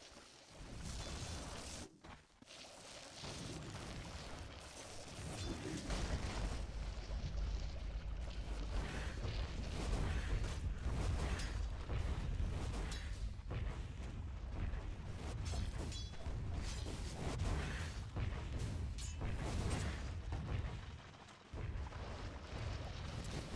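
Game spell effects crackle and burst in a fight.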